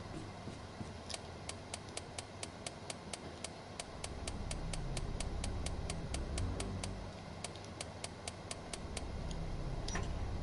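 A safe dial clicks rapidly as it turns.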